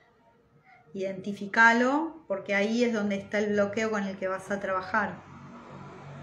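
A woman speaks softly and slowly, close by.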